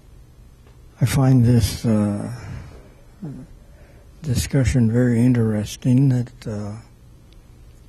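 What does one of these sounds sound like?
An elderly man speaks slowly into a microphone.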